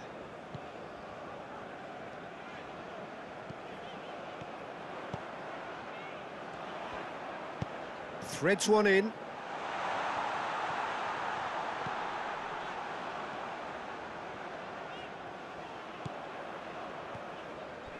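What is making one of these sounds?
A large stadium crowd murmurs and cheers steadily, swelling for a while.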